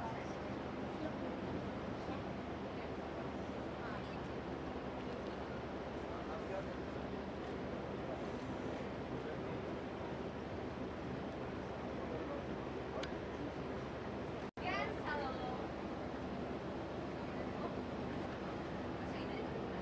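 A crowd chatters nearby outdoors.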